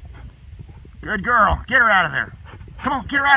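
A horse whinnies loudly and shrilly close by.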